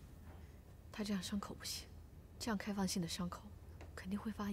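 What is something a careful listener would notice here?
A young woman speaks quietly and seriously.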